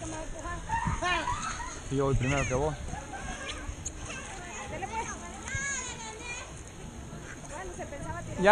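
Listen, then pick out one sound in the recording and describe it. Children shout and call out playfully nearby, outdoors.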